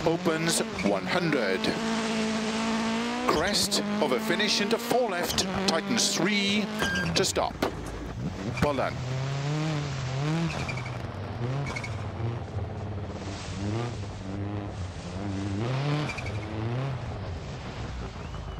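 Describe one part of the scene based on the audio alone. A rally car engine roars and revs hard, rising and dropping with each gear change.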